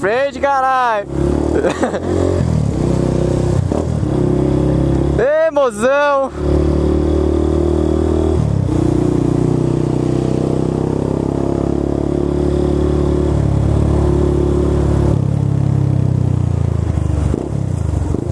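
A motorcycle engine runs close by, revving high and dropping between gear changes.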